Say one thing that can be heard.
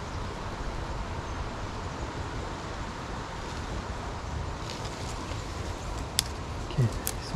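Leaves rustle in a light breeze.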